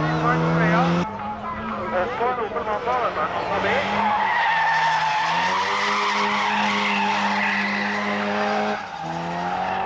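Tyres squeal on asphalt as a car slides through a bend.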